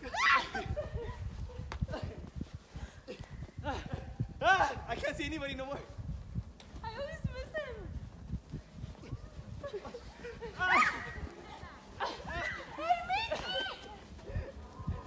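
Children laugh.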